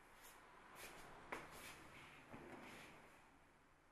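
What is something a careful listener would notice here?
A woman sits down on a cushioned sofa.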